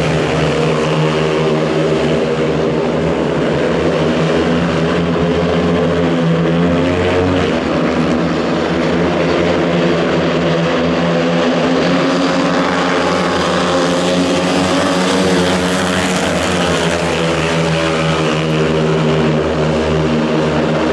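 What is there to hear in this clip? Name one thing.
Several motorcycle engines roar loudly as they race past.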